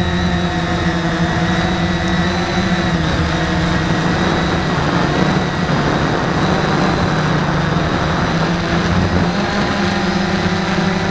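Small drone propellers whine and buzz steadily close by.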